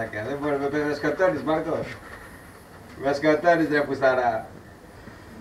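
A man speaks calmly and cheerfully close by.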